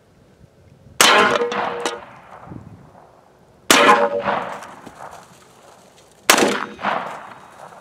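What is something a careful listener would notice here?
Gunshots boom one at a time and echo across open ground.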